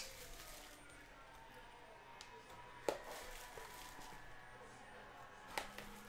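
A blade slits plastic shrink wrap on a box.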